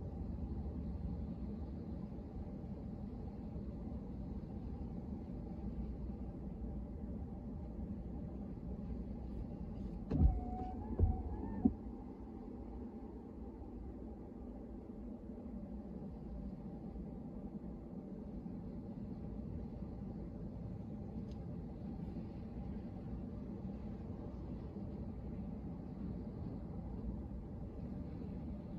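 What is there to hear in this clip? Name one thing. Rain patters on a car's windshield.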